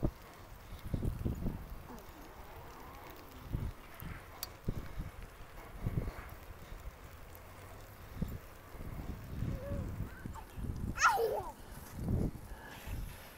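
Bicycle tyres roll on a paved path.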